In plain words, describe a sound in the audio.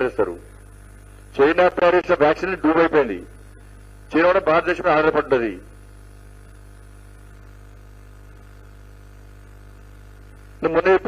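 A middle-aged man speaks forcefully into a microphone, in bursts with pauses.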